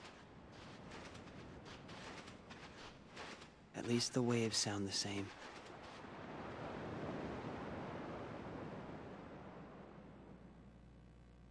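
Gentle waves wash against a shore.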